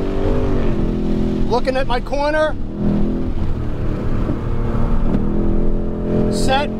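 A car engine roars steadily at speed, heard from inside the car.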